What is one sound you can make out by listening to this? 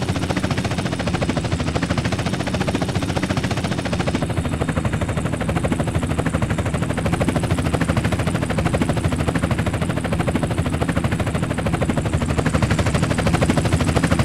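A helicopter's rotor blades chop rapidly and steadily overhead.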